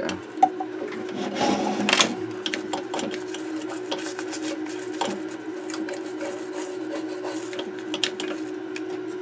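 A small metal tool clicks and scrapes against a circuit board.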